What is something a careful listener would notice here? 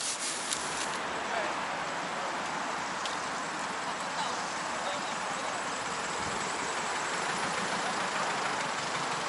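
A car engine hums as the car drives slowly closer.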